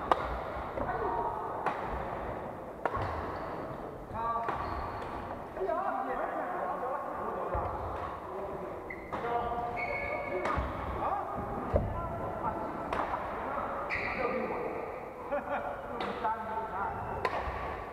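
Rackets smack a shuttlecock in quick rallies, echoing in a large hall.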